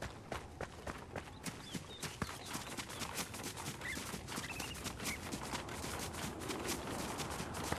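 Footsteps crunch quickly over dry grass and dirt.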